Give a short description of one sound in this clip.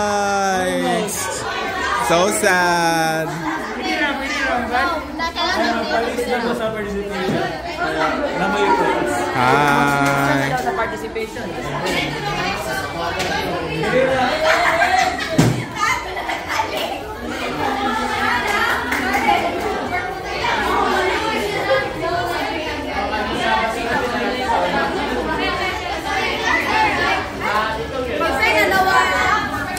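Many young people chatter and laugh all around, close by, in a room with some echo.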